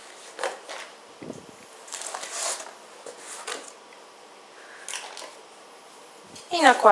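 A plastic sheet rustles and crinkles close by.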